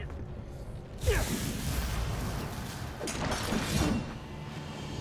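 A monster roars with a deep rumble.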